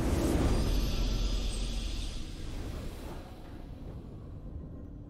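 A triumphant game fanfare swells and slowly fades.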